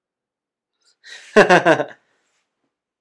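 A man laughs briefly close to a microphone.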